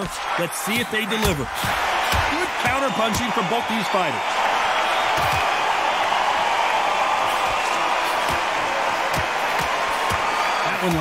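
A large crowd cheers and roars in an arena.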